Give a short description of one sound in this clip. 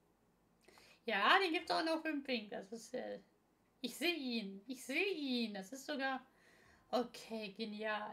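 A young woman speaks calmly and cheerfully, close to a microphone.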